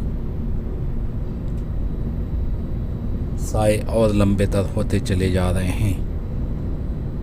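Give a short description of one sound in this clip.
A car drives fast along a highway with a steady low rumble of tyres and engine.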